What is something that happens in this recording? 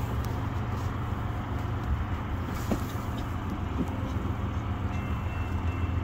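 A van approaches along the road.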